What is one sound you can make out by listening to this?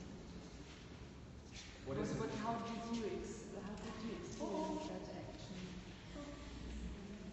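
A young woman speaks to a group nearby.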